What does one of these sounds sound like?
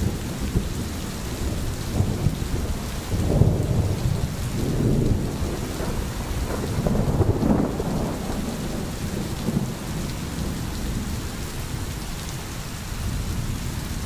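A stream gurgles over stones.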